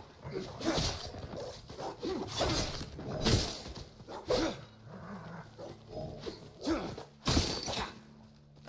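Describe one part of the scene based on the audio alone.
Swords clash and strike in quick blows.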